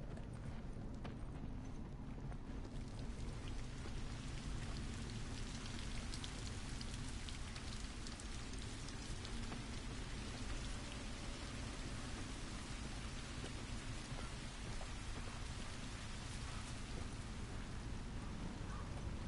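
Footsteps shuffle over rough ground.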